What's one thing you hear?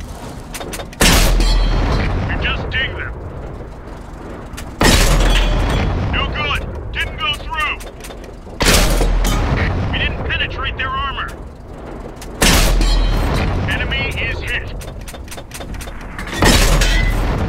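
A tank cannon fires with loud booms at regular intervals.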